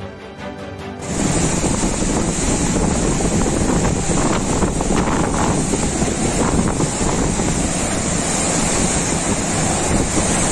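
Storm waves crash and surge over a seafront.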